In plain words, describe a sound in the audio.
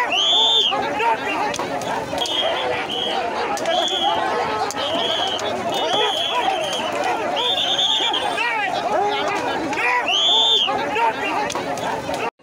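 A large crowd of men and women shout and chatter loudly outdoors.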